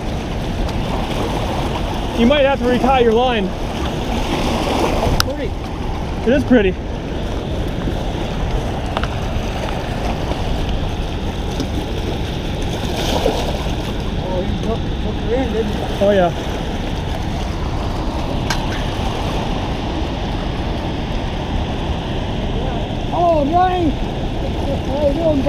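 Water rushes and splashes steadily against rocks nearby.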